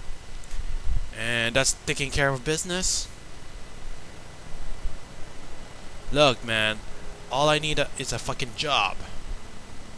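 A young man speaks with rising irritation, close by.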